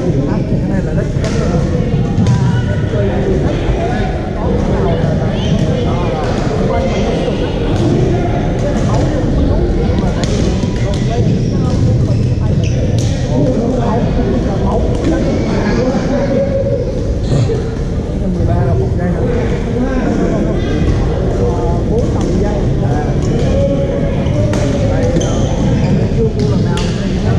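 Badminton rackets strike shuttlecocks with sharp pops.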